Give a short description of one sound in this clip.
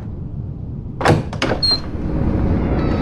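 Heavy sliding doors clunk and rumble open.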